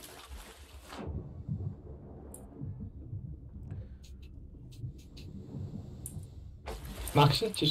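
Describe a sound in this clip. A muffled rumble of water is heard from underwater.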